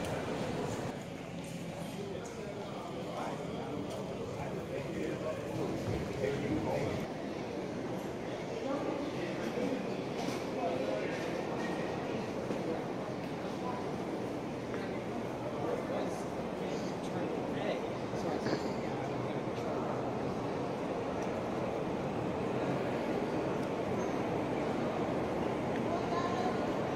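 Suitcase wheels roll on a hard floor.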